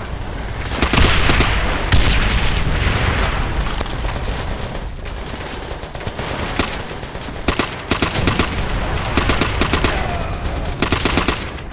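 Explosions rumble in the distance.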